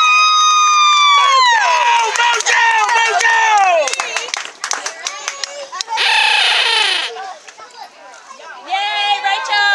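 A group of young girls shout and cheer together close by.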